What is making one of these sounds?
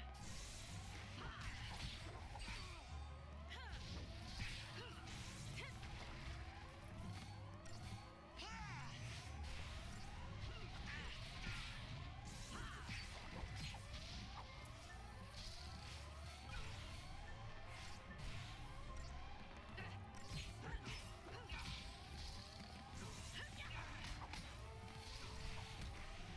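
Sharp weapon strikes and magic blasts crash again and again in a fast fight.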